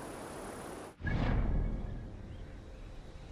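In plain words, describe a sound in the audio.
A low whoosh sounds as a menu opens.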